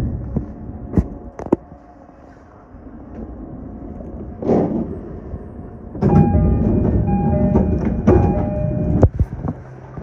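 Train wheels clank sharply over rail joints.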